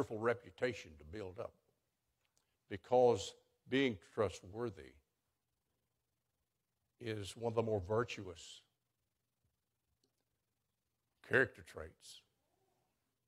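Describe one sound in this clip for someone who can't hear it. An elderly man speaks calmly into a microphone, with pauses between phrases.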